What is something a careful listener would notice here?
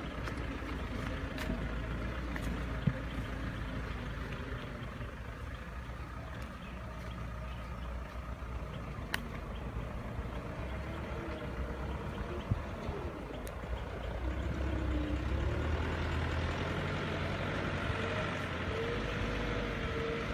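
A loaded truck engine rumbles along a dirt track, growing louder as it comes closer.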